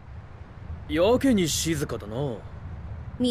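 A young man speaks with animation, close up.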